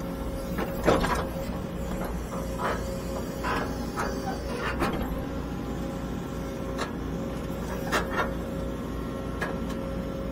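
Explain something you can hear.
A diesel engine rumbles steadily from inside an excavator cab.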